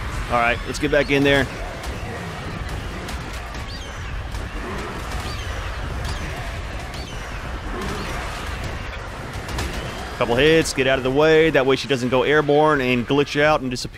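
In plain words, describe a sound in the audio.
A large bird flaps its wings in flight.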